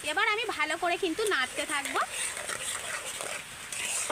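A spatula scrapes and stirs a thick mixture in a metal bowl.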